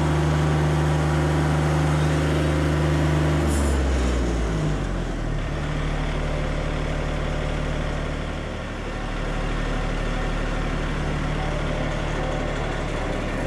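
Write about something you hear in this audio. A bandsaw whirs as the sawmill carriage moves along the track.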